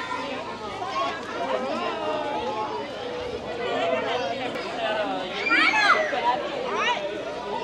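Many children chatter and shout outdoors.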